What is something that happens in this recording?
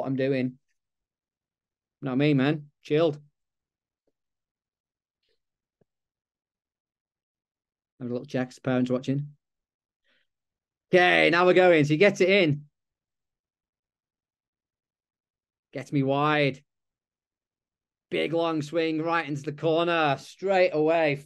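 A young man speaks calmly through an online call, in short bursts with pauses.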